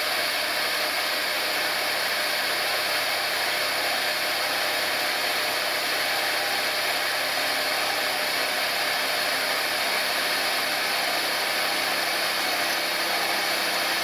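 A milling machine cutter grinds steadily through metal with a high, harsh whine.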